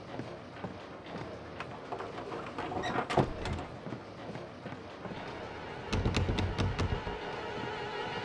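Footsteps thud on a creaky wooden floor.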